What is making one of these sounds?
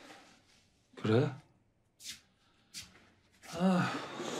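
A woman asks a short question softly, close by.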